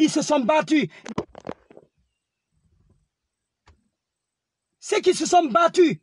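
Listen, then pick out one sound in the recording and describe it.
A young man speaks with animation, close to a phone microphone.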